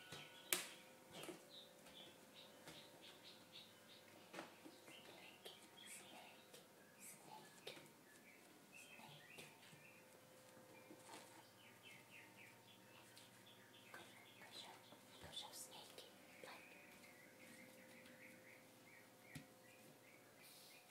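Bare feet patter softly on a hard floor.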